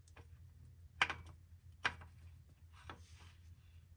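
A metal oil filter clicks and scrapes as a hand screws it into place.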